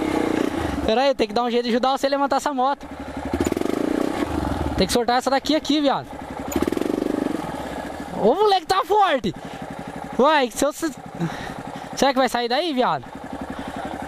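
A trail motorcycle engine revs in short bursts.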